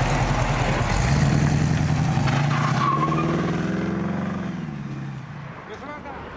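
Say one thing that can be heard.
A car engine revs and pulls away, fading into the distance.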